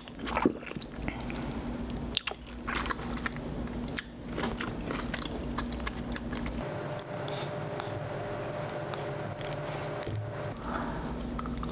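A woman chews wetly and smacks her lips close to the microphone.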